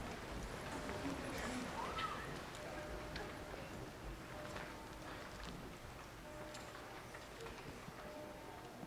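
A crowd murmurs and shuffles in a large echoing hall.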